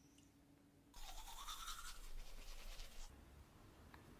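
A toothbrush scrubs against teeth.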